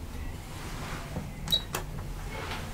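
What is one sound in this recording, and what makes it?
A finger presses an elevator button with a click.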